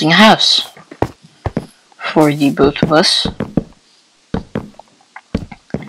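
Wooden blocks are set down with short, dull knocks.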